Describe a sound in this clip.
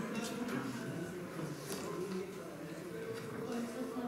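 Paper pages rustle in a man's hands.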